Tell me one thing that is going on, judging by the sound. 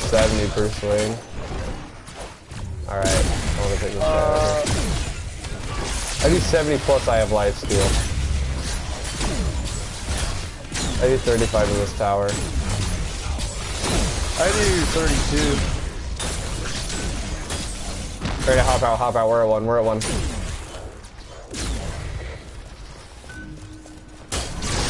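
Weapons clash and thud in combat.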